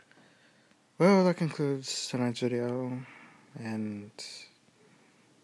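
A young man speaks close to a phone microphone, drawn out and singsong.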